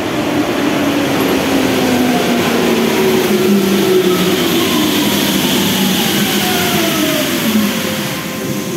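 Train motors whine with a pitch that slowly glides down as the train brakes.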